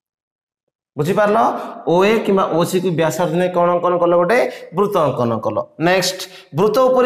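A young man speaks calmly and clearly close to a microphone, explaining.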